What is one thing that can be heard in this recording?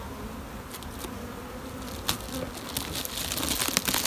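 A metal tool scrapes against a wooden hive.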